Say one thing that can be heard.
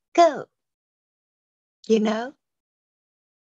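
A woman speaks briefly and softly into a phone.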